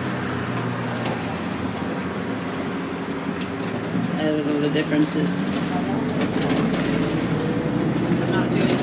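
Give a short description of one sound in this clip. A small fan whirs close by.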